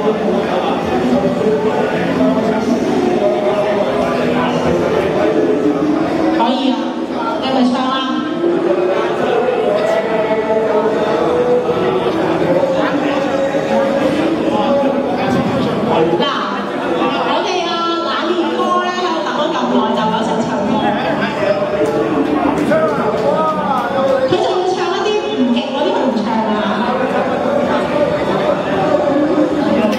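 A young woman sings into a microphone through a loudspeaker outdoors.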